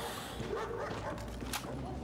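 A rifle magazine clicks into place.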